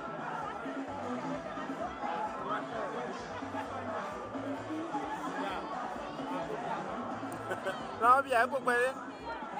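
Many men and women chatter and talk at once outdoors.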